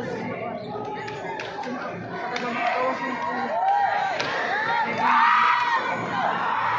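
A crowd of young people cheers and shouts in an echoing hall.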